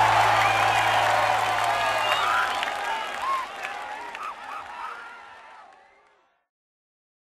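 A large crowd cheers loudly outdoors and slowly fades away.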